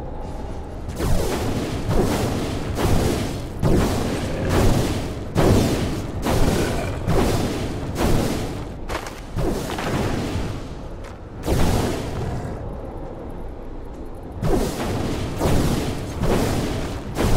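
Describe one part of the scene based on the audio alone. Spells blast and crackle in a fast fight.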